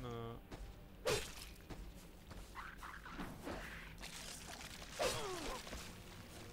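A sword swings with a sharp whoosh and hit.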